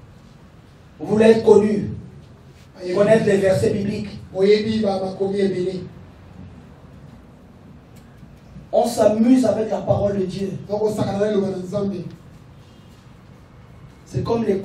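A man speaks emotionally into a microphone.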